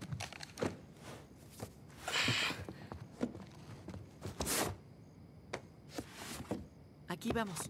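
Cardboard boxes scrape and thump as they are lifted and set down.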